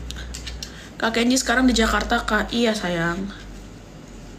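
A young woman speaks calmly, close to the microphone.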